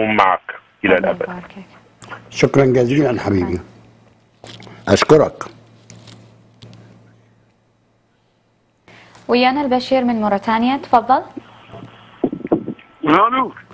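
A young woman speaks warmly close to a microphone, with pauses.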